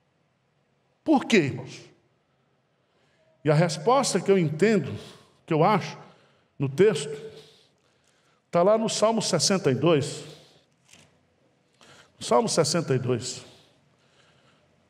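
A middle-aged man speaks calmly through a microphone in bursts, pausing between phrases.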